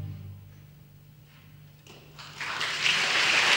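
A pipe organ holds a low final chord that fades away.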